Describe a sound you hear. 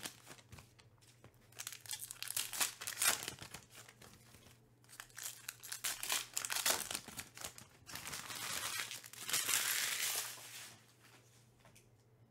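Trading cards click softly as they are set down on a stack.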